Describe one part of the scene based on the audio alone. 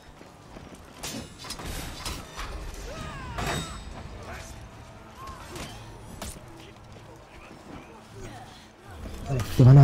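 Metal blades clash and clang in a fierce fight.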